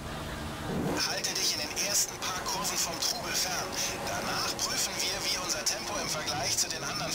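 A racing car engine revs and roars loudly.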